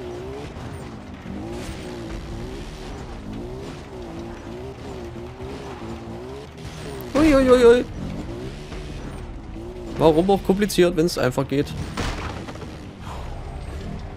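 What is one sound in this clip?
A quad bike engine drones and revs up and down.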